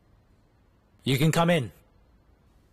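A young man speaks briefly and sharply, close by.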